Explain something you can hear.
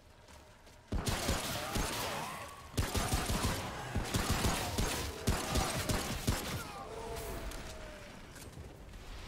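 Footsteps crunch through dry grass and rubble.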